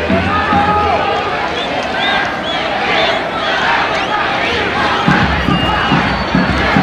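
A crowd of spectators cheers and shouts outdoors in the distance.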